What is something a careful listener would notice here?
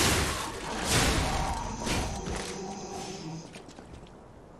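Heavy metal weapons clash with loud ringing impacts.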